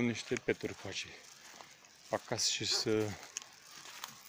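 A middle-aged man talks calmly close to the microphone, outdoors.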